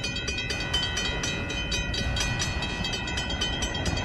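A level crossing bell rings steadily and rapidly.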